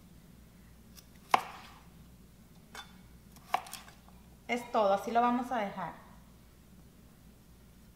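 A knife chops sharply on a cutting board.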